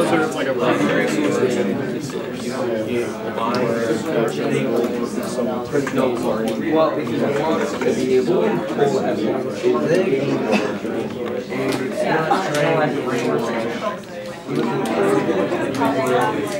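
Young people chatter in the background.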